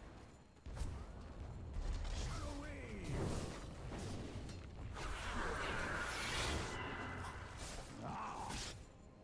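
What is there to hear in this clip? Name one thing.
Weapons clash and thud in a fast video game battle.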